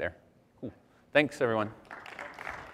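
A young man speaks into a microphone in a large hall.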